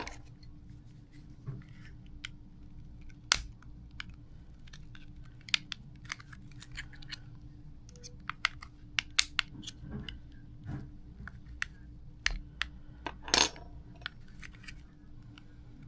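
Small metal pieces clink as they are set down on a hard surface.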